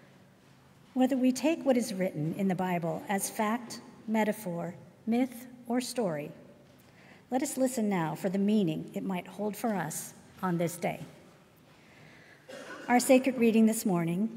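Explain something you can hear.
A woman reads aloud calmly through a microphone in a reverberant hall.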